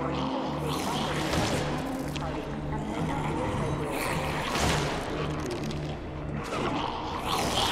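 A heavy metal door slides open with a low rumble.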